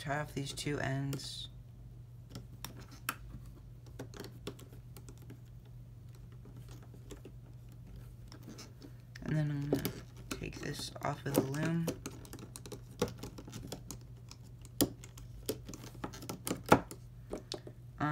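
A plastic hook clicks and taps against a plastic loom.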